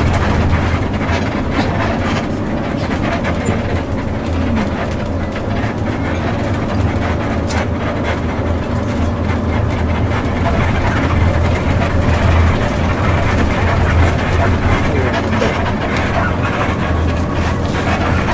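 A bus engine drones steadily from inside the cabin.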